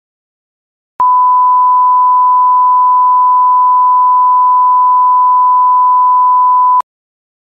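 A steady, high-pitched test tone sounds, then stops abruptly.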